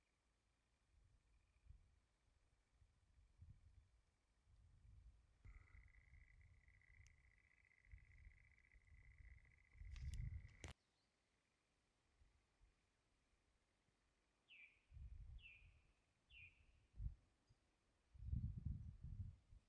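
Wind blows outdoors in uneven gusts.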